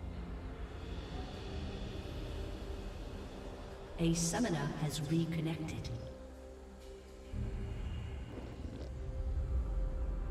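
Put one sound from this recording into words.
Magic spells whoosh and crackle during a game battle.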